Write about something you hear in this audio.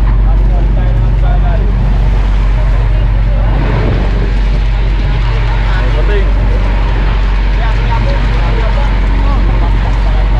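Several men shout and call out to each other.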